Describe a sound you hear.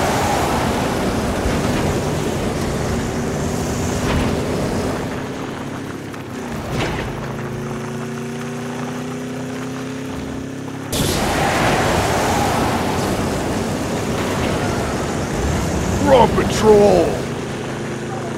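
A car engine roars steadily as the vehicle drives.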